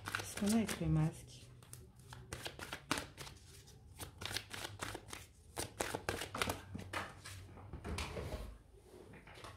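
A deck of cards is shuffled with quick, riffling flicks.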